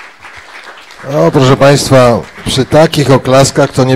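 Several men sing together in harmony through microphones, loud and close.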